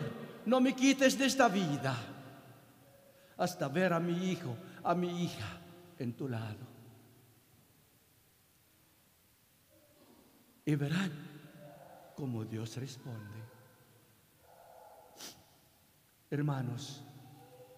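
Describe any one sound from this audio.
A man speaks into a microphone in a slow, measured voice, echoing through a large hall.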